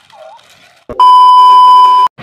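A loud, steady electronic test tone beeps.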